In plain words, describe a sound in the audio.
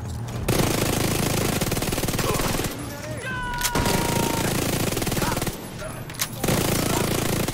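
Rapid automatic gunfire rattles loudly in bursts.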